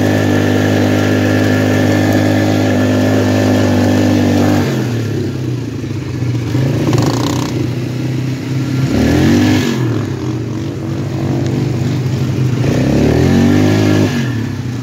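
An all-terrain vehicle engine roars up close, revving up and down as it speeds along.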